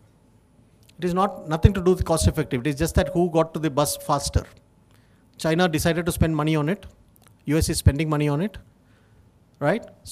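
A man speaks calmly into a microphone, heard over loudspeakers in a large hall.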